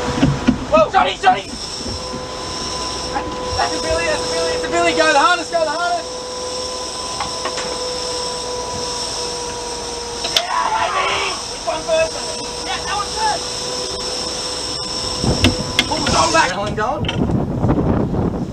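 Men shout with excitement nearby.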